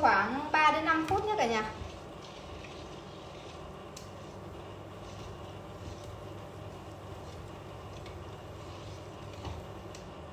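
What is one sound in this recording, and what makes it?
A spoon scrapes against the inside of a metal pot.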